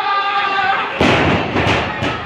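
A body slams onto a wrestling ring mat with a loud thud.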